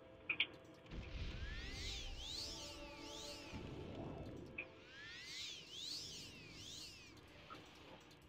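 A magic spell rings out with shimmering, rising and falling chimes.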